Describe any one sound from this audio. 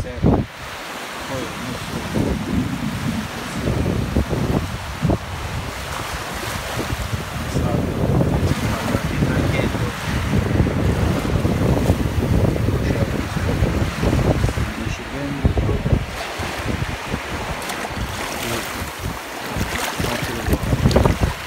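Small waves wash onto a sandy shore.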